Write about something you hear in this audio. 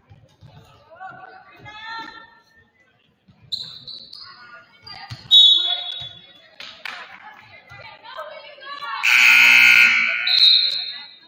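A basketball thumps on a wooden floor.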